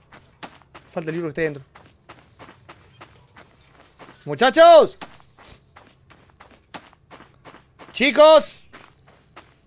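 A young man exclaims loudly into a close microphone in short bursts.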